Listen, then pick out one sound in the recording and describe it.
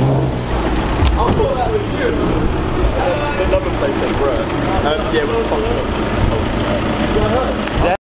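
Young men talk loudly nearby outdoors.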